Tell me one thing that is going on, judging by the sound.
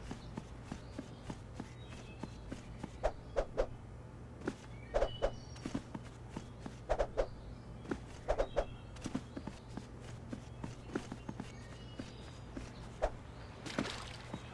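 Light footsteps patter on grass.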